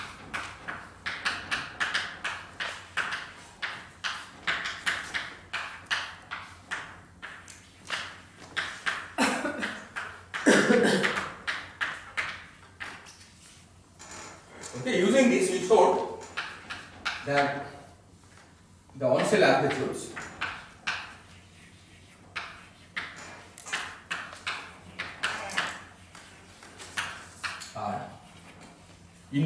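Chalk taps and scrapes quickly on a blackboard.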